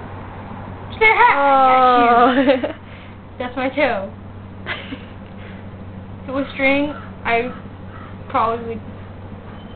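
A woman talks playfully and close by.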